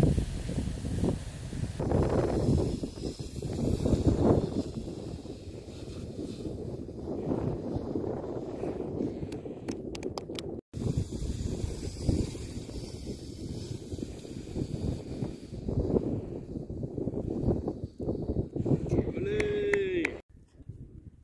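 Wind blows hard across the microphone outdoors.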